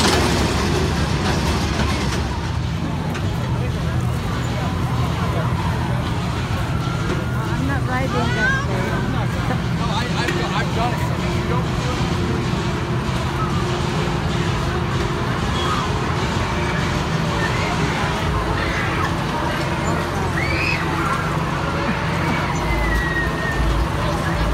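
A fairground ride rumbles and whirs as it spins.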